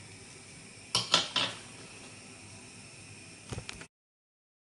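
A metal spatula clinks against a plate.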